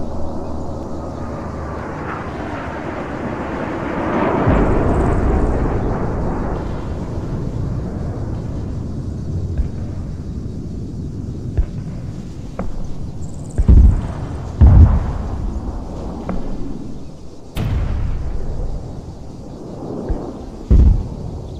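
Flares pop and crackle in the sky.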